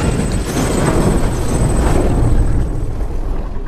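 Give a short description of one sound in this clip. A fire roars.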